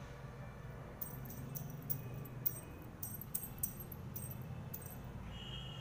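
Anklet bells jingle softly as feet shift.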